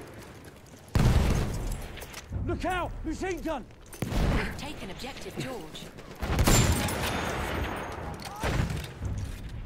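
Gunshots crack sharply.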